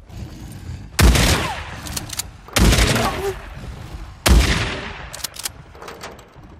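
A rifle fires single shots that echo outdoors.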